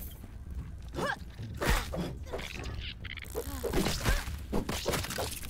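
A large spider creature screeches and hisses.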